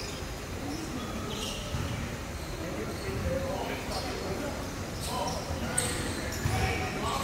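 Young men chatter and call out in a large echoing hall.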